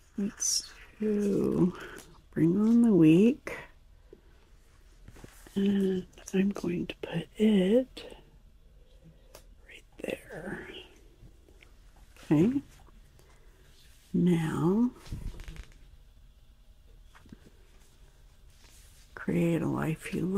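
Paper sheets rustle and crinkle close by.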